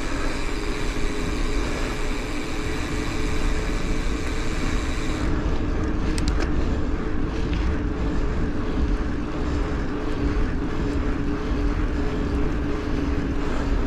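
Bicycle tyres hum steadily on asphalt.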